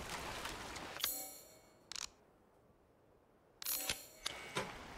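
Short electronic menu chimes sound.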